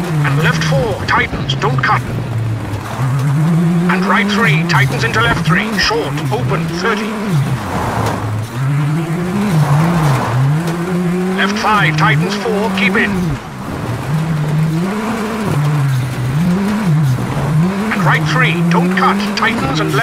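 A rally car engine revs hard, rising and falling in pitch through gear changes.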